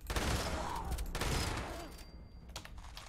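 A gun fires several shots in quick succession.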